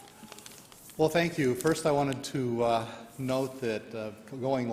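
An older man speaks calmly into a microphone in an echoing room.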